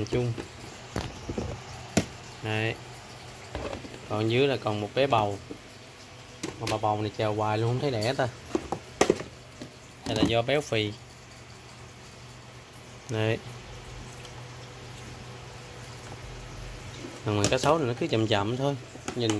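A plastic lid knocks and clicks against a plastic tub.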